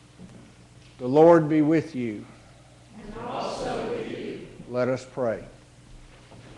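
A man chants a short sung phrase in a reverberant hall.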